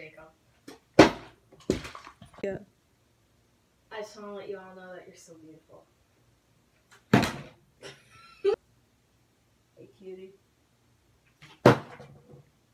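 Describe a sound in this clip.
A plastic bottle thumps down on a wooden table.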